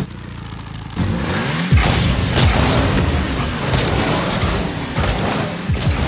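A rocket boost roars loudly.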